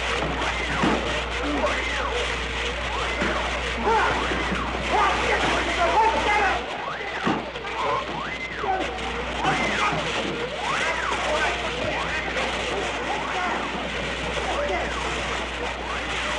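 A fire hose sprays a hard jet of water.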